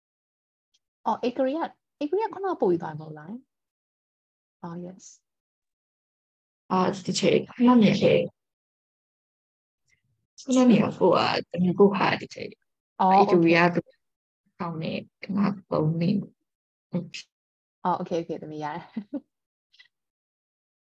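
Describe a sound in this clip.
A young woman speaks calmly and clearly into a microphone, heard as if through an online call.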